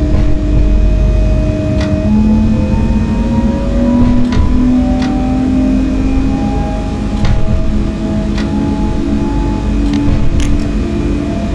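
An electric train motor whines, rising steadily in pitch as the train speeds up.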